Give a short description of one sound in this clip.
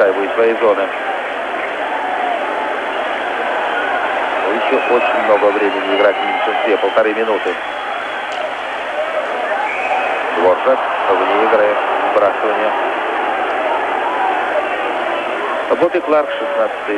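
A large crowd murmurs and cheers throughout in a big echoing arena.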